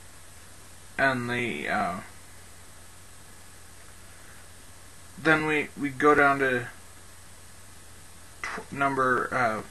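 A man speaks calmly into a nearby microphone, in short phrases with pauses.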